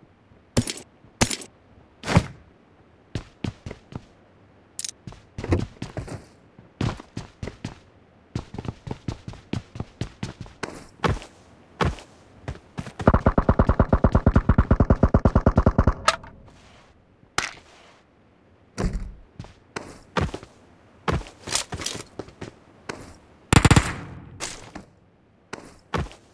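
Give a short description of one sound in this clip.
Footsteps thud quickly across a wooden floor.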